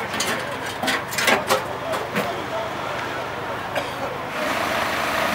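Metal tools clank and knock close by.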